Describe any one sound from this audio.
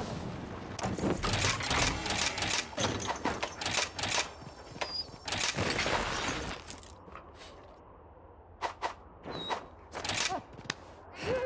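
Short menu clicks and chimes sound in quick succession.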